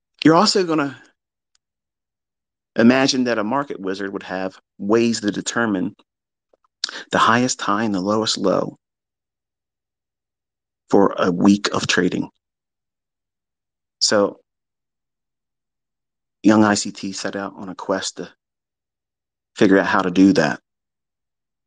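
A man speaks calmly and close to a microphone, in short phrases with pauses.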